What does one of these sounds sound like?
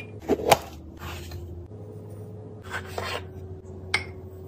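A metal scoop scrapes through coffee grounds.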